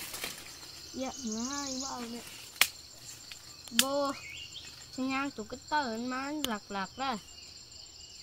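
A young boy speaks calmly and close by, outdoors.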